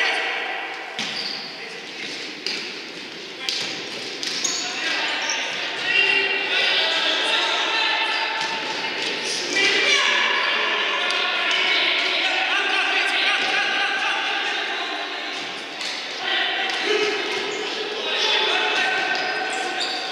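A ball is kicked and thuds in a large echoing hall.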